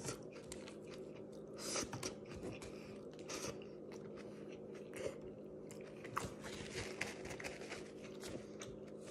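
A young man chews food loudly and wetly close to a microphone.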